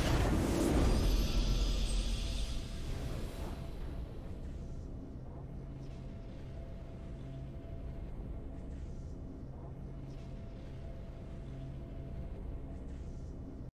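A triumphant fanfare plays and settles into soft, steady music.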